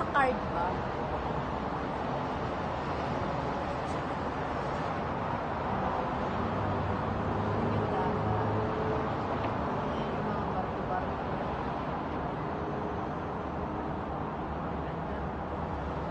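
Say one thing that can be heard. Distant city traffic hums steadily far below.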